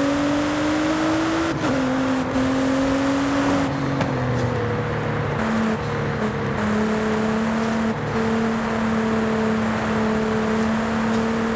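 A race car engine roars loudly at high speed.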